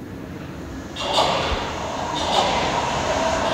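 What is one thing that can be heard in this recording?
A subway train pulls into a station.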